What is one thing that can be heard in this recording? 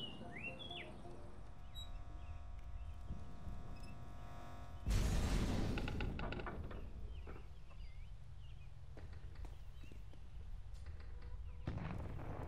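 Footsteps thud on wooden floors.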